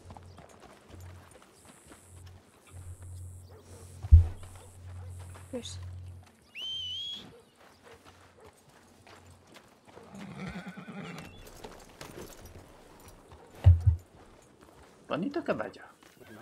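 Horse hooves clop on a dirt road.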